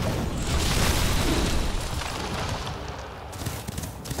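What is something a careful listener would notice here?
A magical spell bursts with a crackling whoosh.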